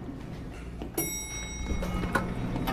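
An elevator bell chimes once.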